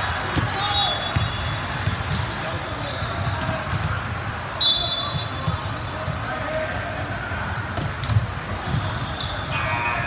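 Voices of a crowd murmur and call out in a large echoing gym.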